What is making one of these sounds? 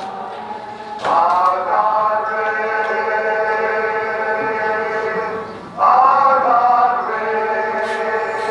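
A large crowd sings together over a loudspeaker.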